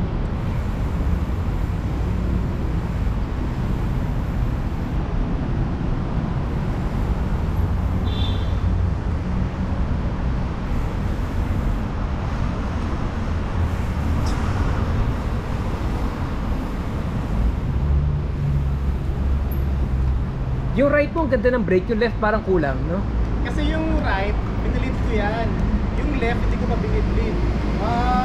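Wind rumbles steadily across a microphone.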